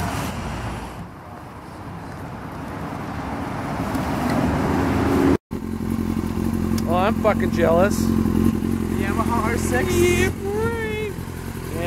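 A motorcycle engine idles with a steady rumble.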